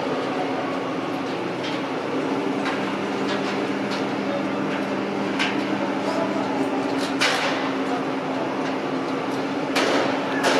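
The diesel engine of a rough-terrain crane hums under load as it lifts.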